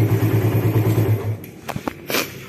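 A motorcycle engine cuts out.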